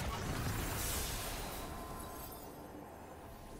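A magical shimmer rings out as a glowing chest bursts open, then fades.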